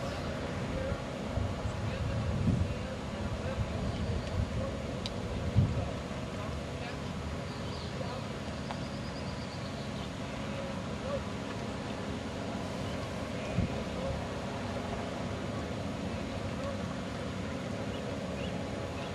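Wind gusts outdoors and buffets the microphone.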